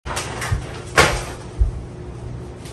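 A woman's footsteps thud on a wooden floor.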